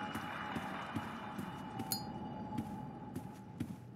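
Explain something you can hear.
A lighter clicks and flares.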